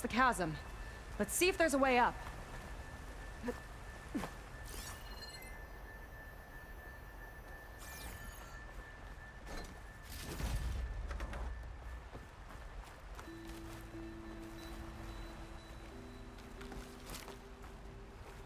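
Footsteps scuff and tap over rock.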